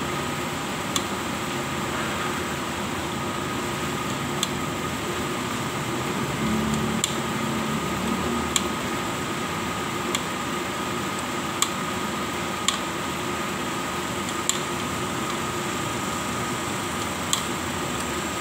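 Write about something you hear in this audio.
Metal parts click sharply now and then as a hand works a mechanism.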